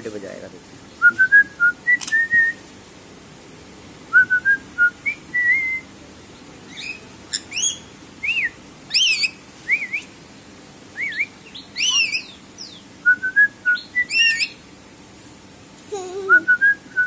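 Parrots chirp and whistle in short, sharp calls close by.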